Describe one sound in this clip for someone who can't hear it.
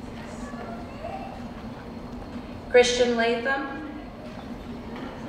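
A man announces names through a loudspeaker in a large echoing hall.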